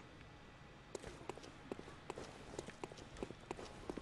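Footsteps tap quickly on stone steps.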